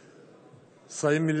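An elderly man speaks formally into a microphone in a large echoing hall.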